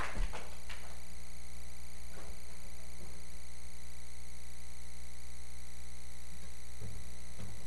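Equipment thumps and knocks now and then.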